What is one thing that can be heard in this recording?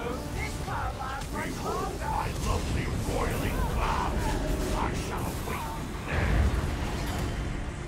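Lightning crackles and booms in bursts.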